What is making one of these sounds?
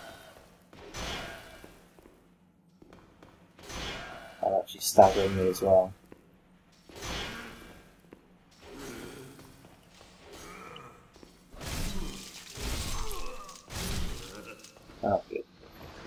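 A sword swings and slashes with sharp whooshes.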